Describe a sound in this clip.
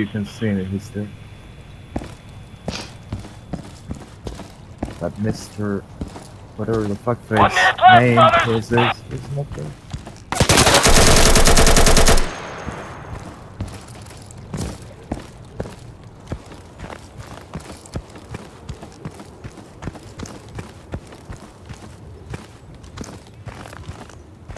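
Footsteps scuff and tap on hard ground.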